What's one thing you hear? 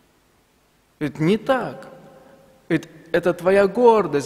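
A young man speaks calmly into a microphone in a large echoing hall.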